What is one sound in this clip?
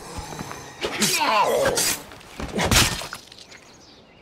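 A creature snarls and groans as it is struck.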